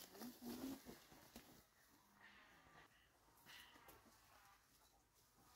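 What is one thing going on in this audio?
A plastic tarp rustles and flaps as it is poked with a stick.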